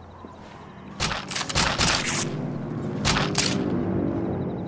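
Ammunition rattles and clicks as it is picked up.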